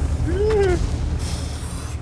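A shell explodes with a heavy bang.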